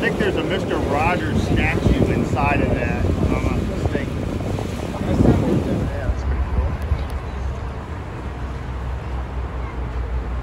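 Wind rumbles steadily across open water.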